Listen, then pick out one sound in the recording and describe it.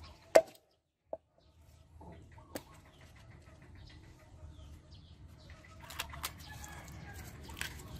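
Wood cracks and splinters as a log is pried apart by hand.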